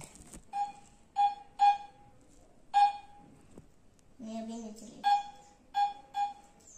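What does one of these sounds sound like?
An electronic toy beeps repeatedly with short, high tones.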